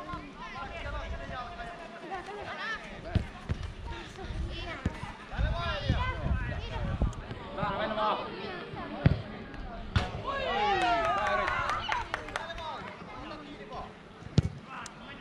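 Young girls shout and call out across an open field.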